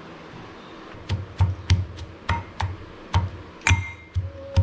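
A pestle knocks against the bottom of a metal mortar in quick, uneven blows.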